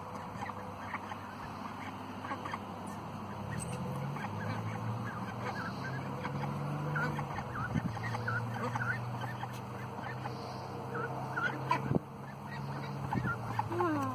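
Ducks quack and chatter softly outdoors.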